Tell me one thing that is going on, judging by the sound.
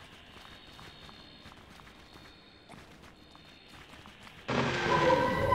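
Small footsteps patter softly on stone.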